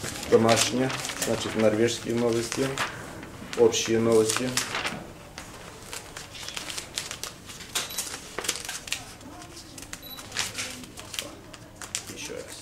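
Newspaper pages rustle and crinkle as they are turned close by.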